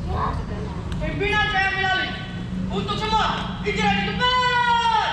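A young girl reads out loud through a loudspeaker outdoors.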